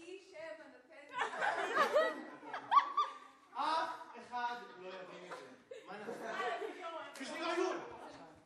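Young women talk and laugh with animation.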